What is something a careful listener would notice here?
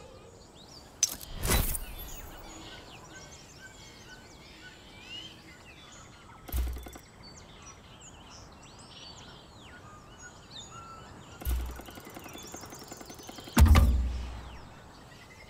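Heavy wooden thuds sound from a chest.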